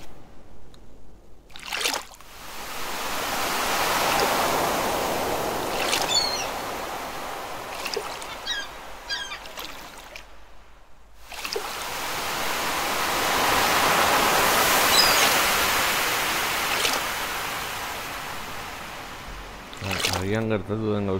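Water laps gently in slow waves that swell and fade.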